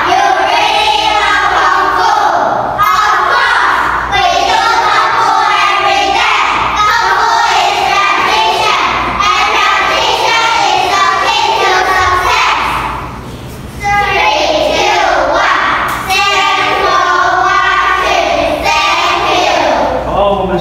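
Upbeat music with singing plays loudly through a loudspeaker.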